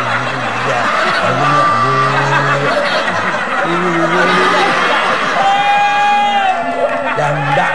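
A young woman laughs.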